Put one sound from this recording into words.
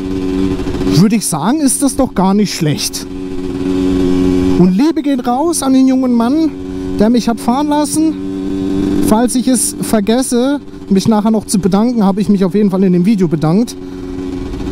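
A motorcycle engine revs hard up and down through the gears.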